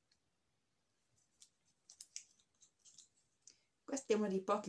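A plastic tube rustles and clicks in a woman's hands.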